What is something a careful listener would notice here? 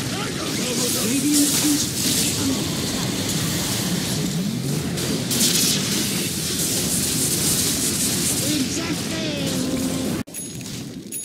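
Video game battle effects crackle, zap and boom.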